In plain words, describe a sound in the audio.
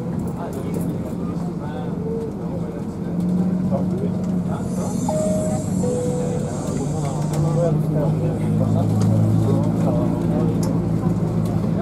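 A bus engine hums steadily while driving, heard from inside.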